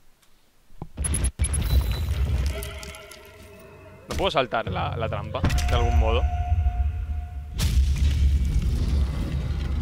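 A deep, low rumbling drone hums and swells.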